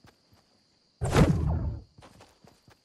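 A glider lands with a heavy thud.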